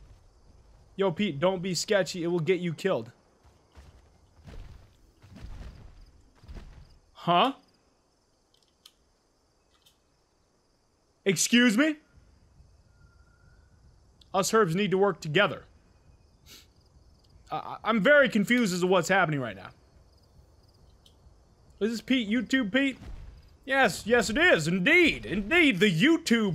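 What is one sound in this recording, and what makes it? A young man talks into a microphone close up, in bursts, with animation.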